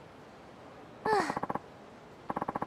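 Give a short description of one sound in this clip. A chime sounds as a dialogue box pops up.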